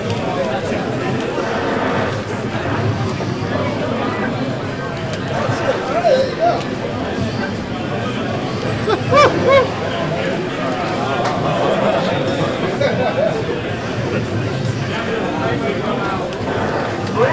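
Two young men talk with animation close to a microphone.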